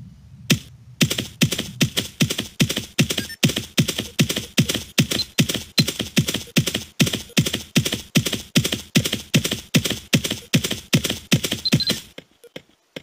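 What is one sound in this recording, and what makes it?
Hooves gallop in a quick, steady rhythm.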